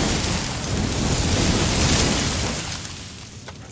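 A flamethrower roars with a loud whoosh of fire.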